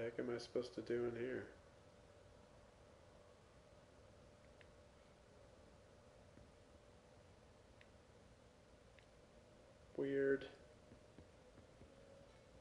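Footsteps tap softly on a floor.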